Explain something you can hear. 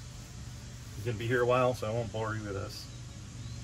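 A man speaks briefly and casually nearby.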